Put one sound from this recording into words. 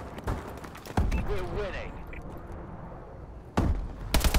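Gunshots boom in quick bursts.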